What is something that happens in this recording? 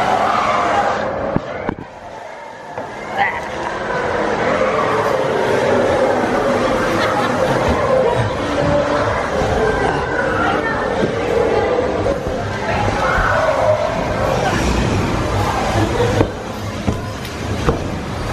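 Children shout and chatter in a large, noisy hall.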